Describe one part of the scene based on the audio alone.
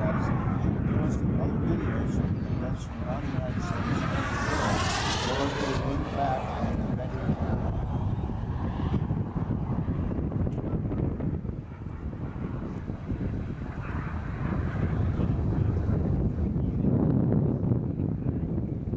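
A jet plane roars high overhead.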